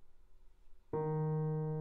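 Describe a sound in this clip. A piano plays a loud chord.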